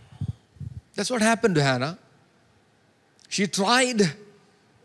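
A man speaks with emphasis into a microphone, heard through a loudspeaker.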